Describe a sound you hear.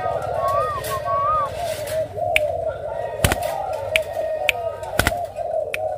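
A dove flaps its wings against a wire cage.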